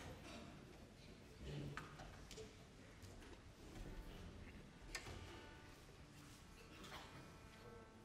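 An orchestra plays softly in a large, echoing concert hall.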